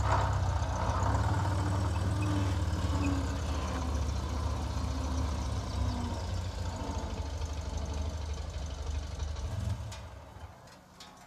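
An old car engine rumbles steadily.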